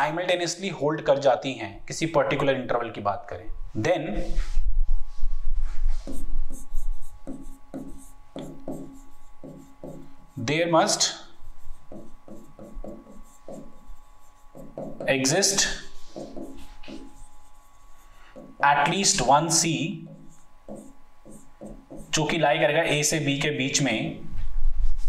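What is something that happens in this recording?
A man speaks calmly and clearly into a close microphone, explaining at an even pace.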